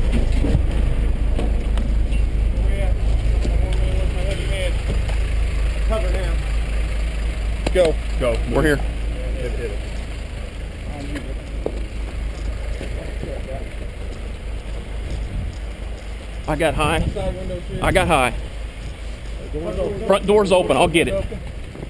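Footsteps and gear rustle as men walk over grass and pavement.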